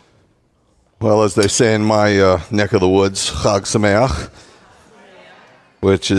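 A middle-aged man sings out through a microphone in an echoing hall.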